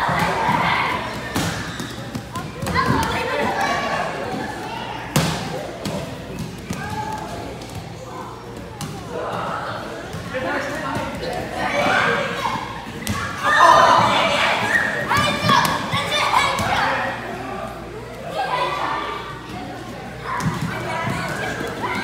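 Bare feet thud and shuffle on padded mats.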